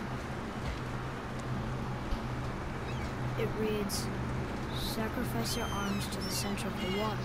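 Wind blows steadily over open water.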